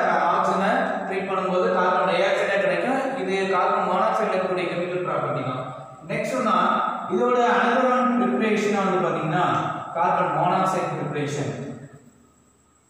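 A man speaks clearly and with animation, close by.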